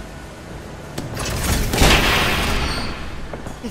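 A door slides open with a loud hiss.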